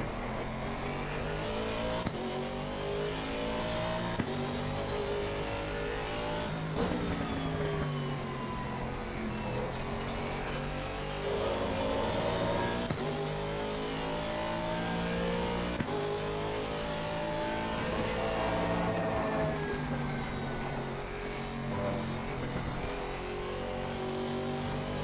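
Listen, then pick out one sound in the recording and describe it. A racing car engine roars, revving up and down as gears shift.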